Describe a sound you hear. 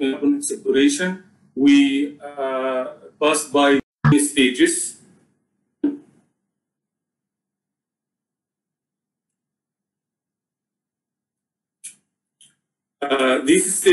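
A man lectures calmly into a microphone, pausing now and then.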